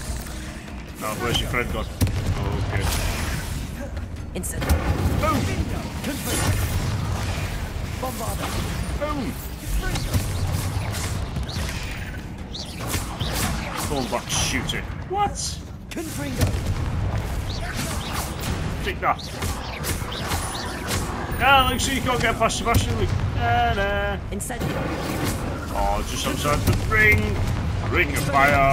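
Magic spells crackle and blast in quick bursts.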